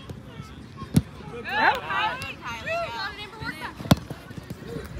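A soccer ball is kicked with a sharp thump.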